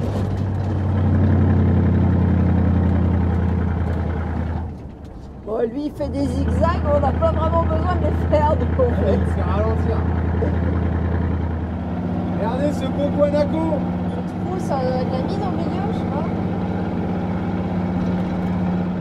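A vehicle engine drones steadily from inside the car.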